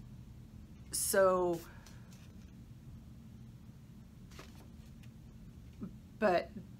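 An older woman speaks calmly and close by, in short bursts.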